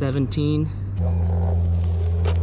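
An electric one-wheeled board's motor hums as it rolls over dirt.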